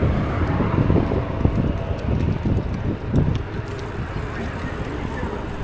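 Bicycle tyres rumble over paving stones.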